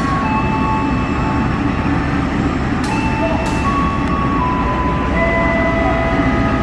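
A diesel locomotive engine rumbles loudly as a train rolls along the track.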